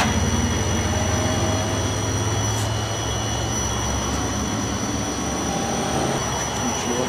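A fuel pump hums steadily.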